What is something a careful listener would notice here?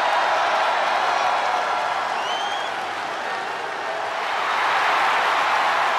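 A large crowd cheers loudly and steadily in a big arena.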